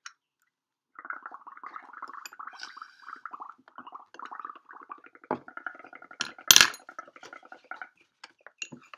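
Air bubbles gurgle as someone blows through a straw into liquid.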